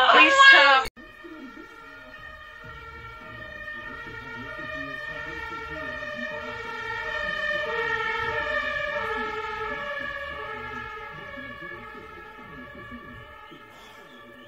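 A dog howls in long, wavering notes that rise and fall.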